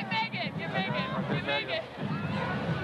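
A young woman shouts excitedly close by.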